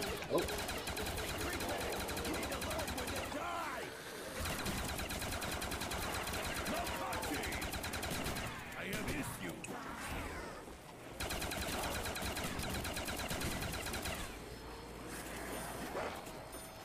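Automatic gunfire rattles in bursts.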